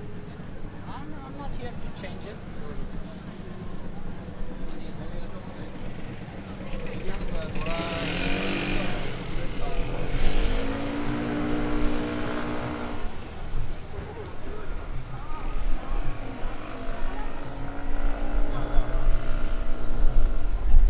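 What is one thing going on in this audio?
Footsteps tap on the pavement.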